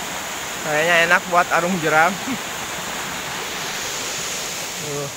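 A shallow river flows and gurgles steadily outdoors.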